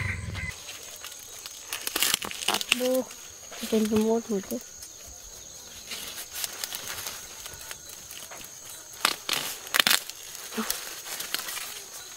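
Corn leaves rustle and snap as a boy pulls at the stalks.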